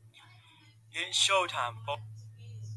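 A man speaks loudly over a microphone in an online call.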